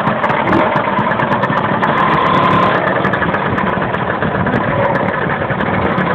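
A scooter engine revs up as the scooter pulls away.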